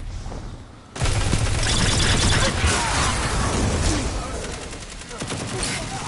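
Energy-weapon gunfire crackles in rapid bursts.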